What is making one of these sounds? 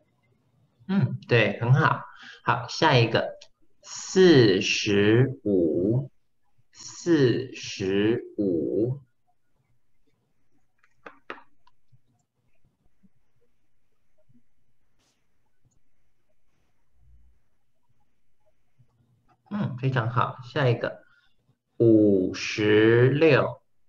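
A young man speaks clearly over an online call, pausing between phrases.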